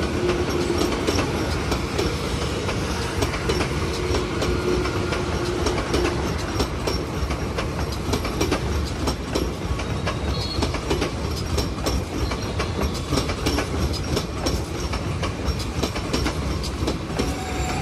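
A train rushes past close by with a loud, steady rumble.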